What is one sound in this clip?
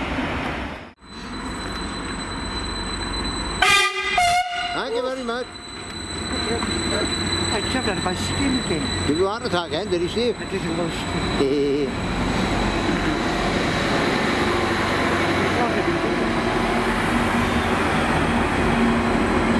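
A passenger train rolls by with wheels clattering on the rails.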